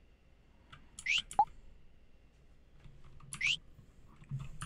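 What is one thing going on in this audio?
A quick rising chime sounds as a choice is confirmed.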